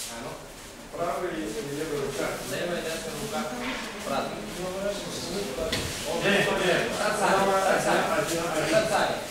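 Many people chatter at once as a group breaks up.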